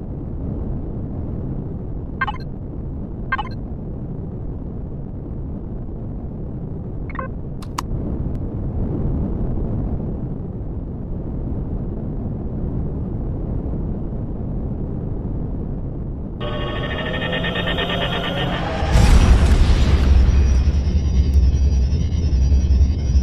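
A spaceship engine hums with a low steady rumble.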